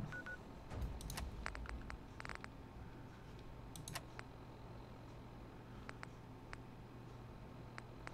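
Soft electronic clicks tick several times.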